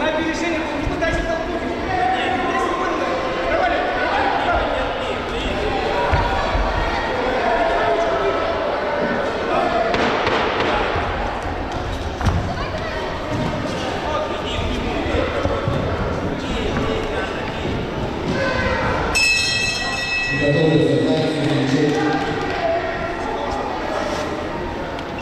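A crowd of spectators shouts and talks in an echoing hall.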